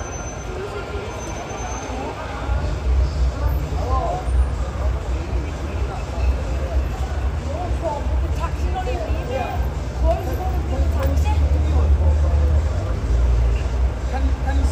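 Young women talk and laugh nearby with animation.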